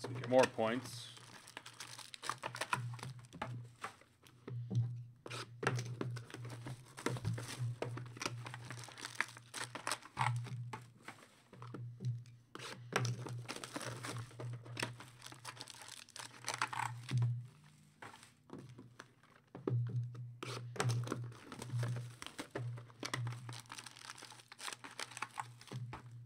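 Cellophane wrappers crinkle and rustle as packs are handled.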